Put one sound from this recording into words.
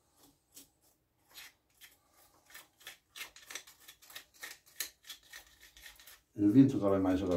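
Pruning shears snip twigs with small clicks.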